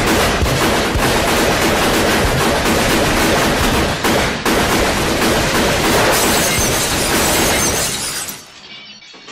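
Rapid machine-gun fire rattles loudly and without pause.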